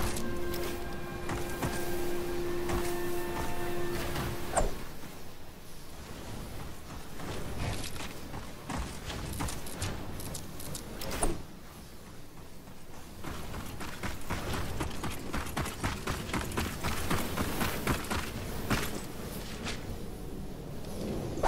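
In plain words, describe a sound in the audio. Footsteps thud on wooden floors.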